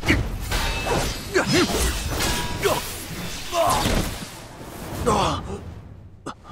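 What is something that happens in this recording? A man grunts and shouts with effort.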